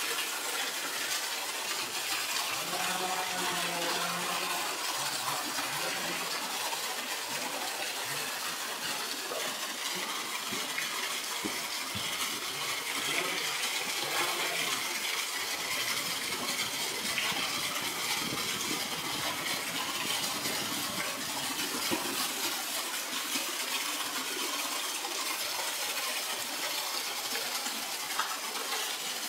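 Large animals splash and paddle in shallow water.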